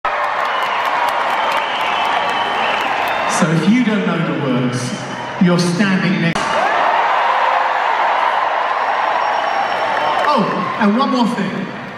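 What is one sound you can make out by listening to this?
A large crowd cheers and shouts throughout.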